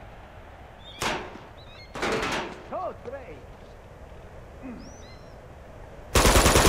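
A rifle fires bursts of shots.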